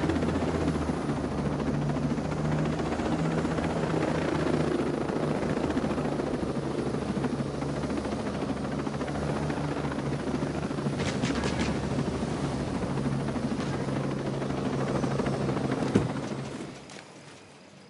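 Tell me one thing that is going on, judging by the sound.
A helicopter's rotor thumps and its engine drones loudly.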